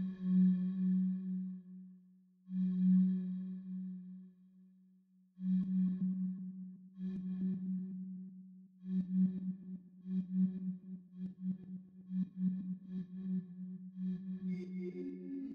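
A synthesizer plays a low buzzing note in repeated bursts, later pulsing quickly.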